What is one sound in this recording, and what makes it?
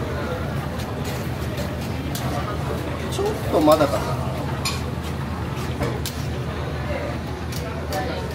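Metal tongs clack against a pan.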